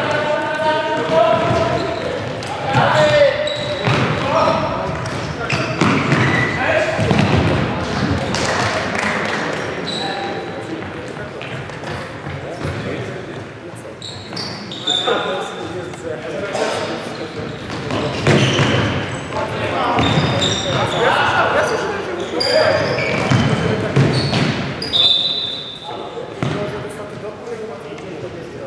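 Young men shout to each other across a hall.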